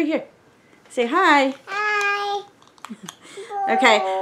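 A little girl laughs and babbles close by.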